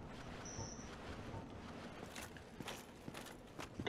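Footsteps crunch on stony ground.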